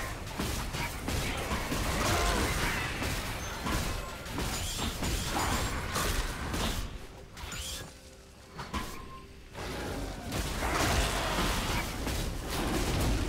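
Weapons clash and strike in quick bursts.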